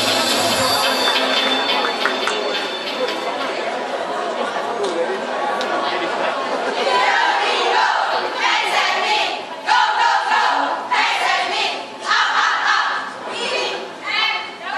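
A choir of young women sings together in a large echoing hall.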